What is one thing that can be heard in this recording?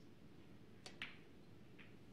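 A cue strikes a billiard ball.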